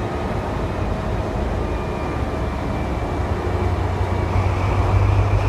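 A diesel locomotive engine rumbles deeply and grows louder as it pulls closer.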